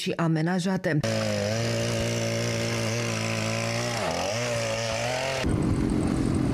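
A chainsaw engine runs steadily, dipping briefly as it bites into ice.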